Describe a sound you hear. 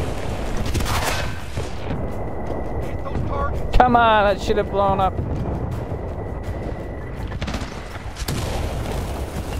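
Gunshots crack and bang loudly.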